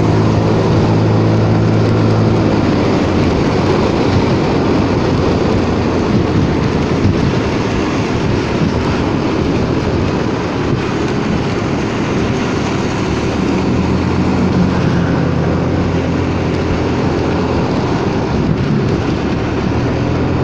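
Tyres hiss on the wet road.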